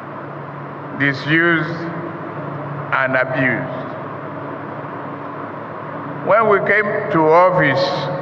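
An elderly man speaks slowly and deliberately into a microphone over loudspeakers, in a large echoing space.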